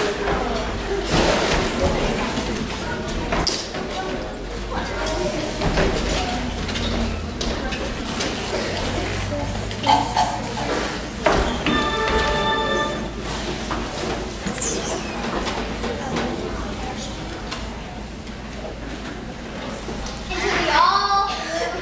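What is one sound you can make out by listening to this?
Children's voices chatter and call out in a large echoing hall.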